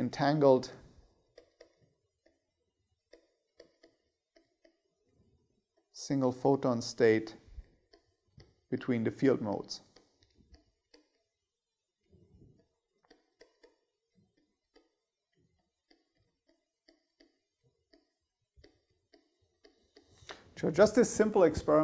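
A man speaks calmly into a microphone, in short bursts with pauses.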